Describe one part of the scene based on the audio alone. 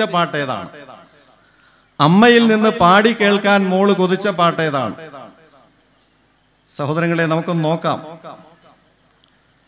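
An elderly man speaks through a microphone in a slow, chanting voice.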